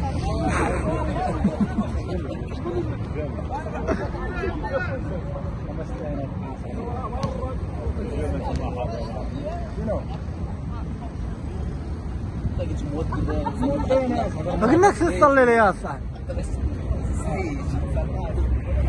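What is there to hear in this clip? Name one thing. Men call out to each other outdoors across a football pitch.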